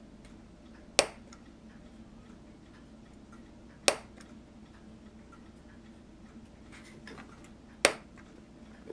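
A craft knife clicks sharply against a cutting surface.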